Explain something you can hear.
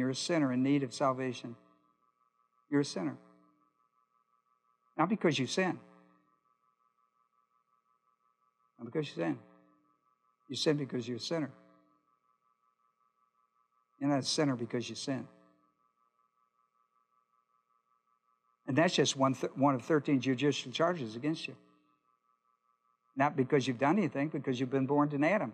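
An older man speaks calmly through a microphone, pausing between phrases.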